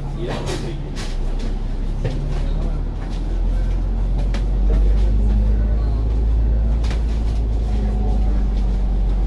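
A tram starts rolling along its rails with a deep, growing rumble.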